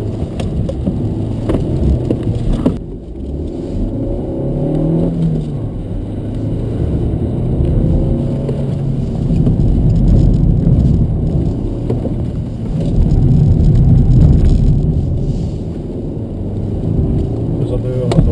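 A car engine hums and revs inside the cabin.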